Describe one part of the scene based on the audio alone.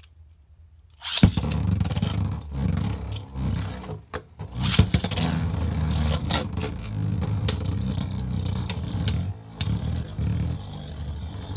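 Spinning tops whir loudly inside a plastic bowl.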